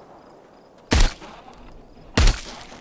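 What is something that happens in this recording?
A gun fires two sharp, loud shots.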